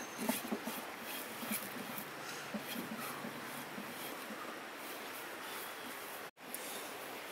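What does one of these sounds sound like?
Hands rub and scrape a clay pot.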